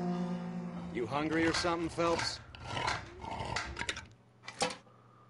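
A can opener grinds and clicks as it cuts around a tin can.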